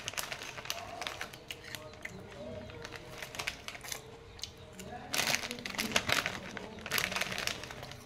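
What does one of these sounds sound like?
A crinkly plastic snack packet rustles and crackles.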